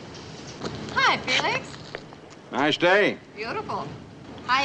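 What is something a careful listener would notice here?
A man answers a greeting cheerfully.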